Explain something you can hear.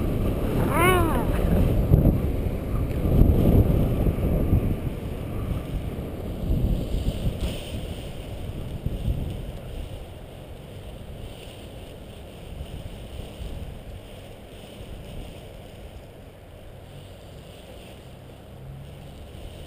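Wind gusts across the microphone outdoors, strong at first and then easing.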